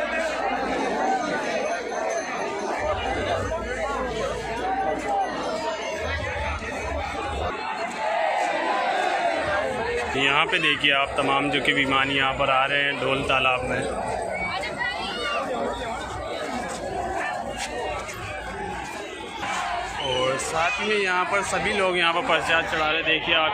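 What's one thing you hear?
A large crowd chatters and shouts loudly outdoors.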